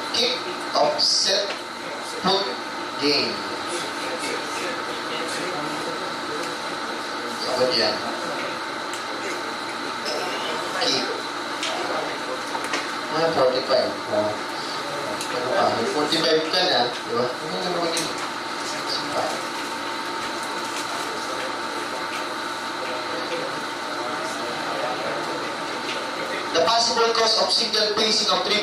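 A man lectures calmly through a microphone.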